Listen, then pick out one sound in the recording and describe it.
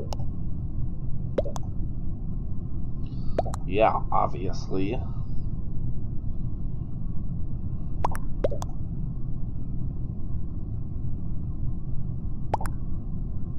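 Short game notification blips sound now and then.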